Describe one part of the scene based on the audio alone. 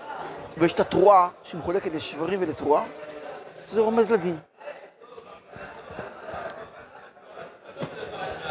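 An elderly man speaks with animation into a nearby microphone.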